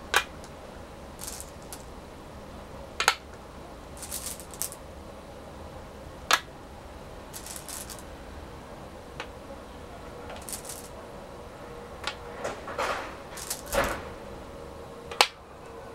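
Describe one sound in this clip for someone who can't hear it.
Stones click sharply onto a wooden board.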